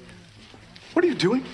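A man speaks loudly with animation, close by.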